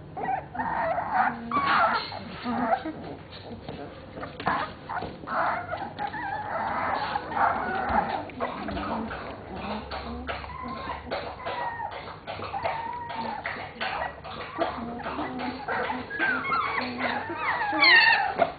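Puppies whine and squeal close by.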